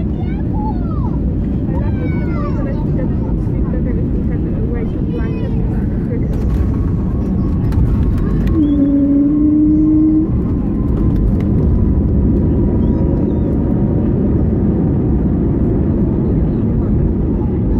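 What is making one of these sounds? Aircraft wheels rumble and thump over the runway.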